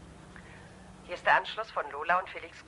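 A man speaks into a telephone close by.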